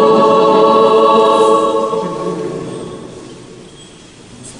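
A choir sings in a large echoing hall and fades away.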